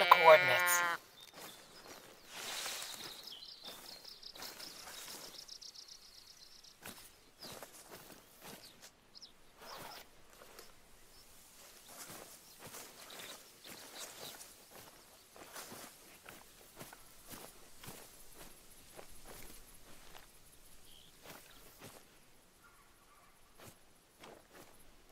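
Footsteps rustle through tall grass and brush.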